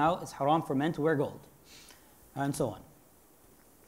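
A man speaks calmly into a clip-on microphone.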